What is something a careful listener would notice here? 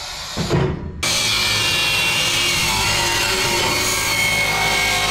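An angle grinder cuts metal loudly.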